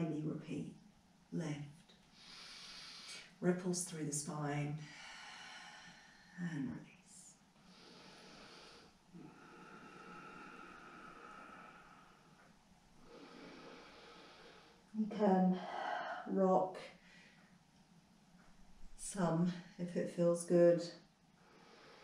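A woman speaks calmly and slowly, close by.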